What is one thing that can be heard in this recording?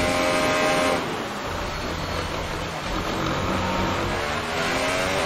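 A Formula One car's turbocharged V6 engine drops in pitch as it downshifts under braking.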